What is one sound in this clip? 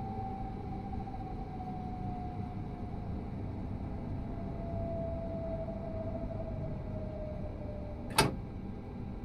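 An electric motor whines and slowly drops in pitch.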